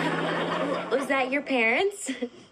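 A teenage girl asks a question nearby.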